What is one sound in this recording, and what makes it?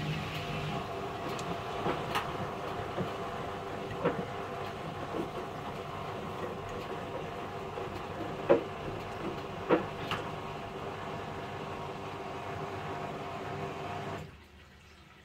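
A front-loading washing machine drum turns, tumbling wet laundry with dull thumps and sloshing.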